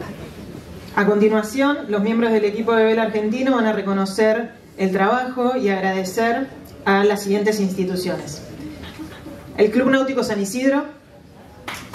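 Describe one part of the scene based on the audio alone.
A woman speaks clearly into a microphone over loudspeakers in an echoing hall.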